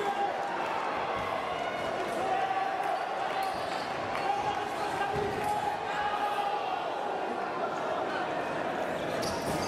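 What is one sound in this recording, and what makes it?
Fencers' shoes squeak and tap on the floor.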